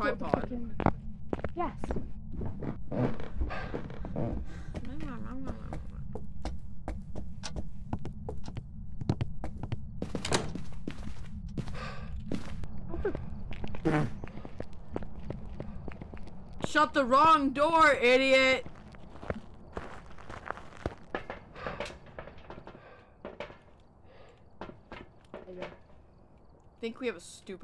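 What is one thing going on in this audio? Footsteps walk steadily across hard floors.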